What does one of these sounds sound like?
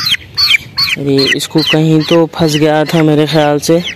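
A bird gives loud, drawn-out squawking cries.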